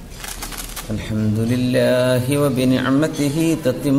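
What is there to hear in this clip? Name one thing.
A man recites in a melodic, chanting voice.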